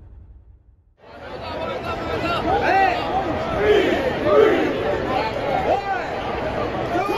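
A brass marching band plays loudly in a large echoing stadium.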